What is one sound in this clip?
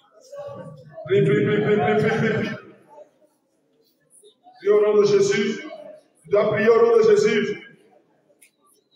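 A crowd of men and women pray aloud together.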